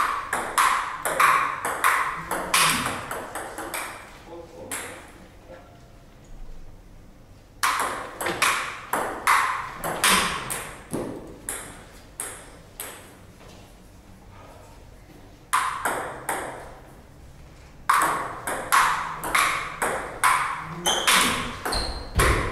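A table tennis ball clicks quickly back and forth off paddles and a table, echoing in a small room.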